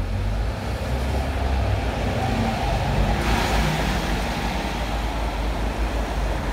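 Traffic hums steadily on the street.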